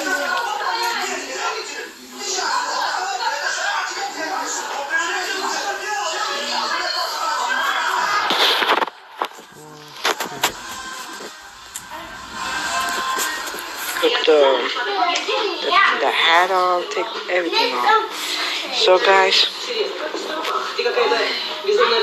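A teenage boy talks with animation close to a phone microphone.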